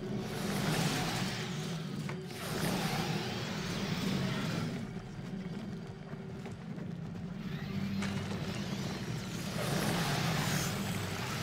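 Creatures screech and clash in a fantasy battle.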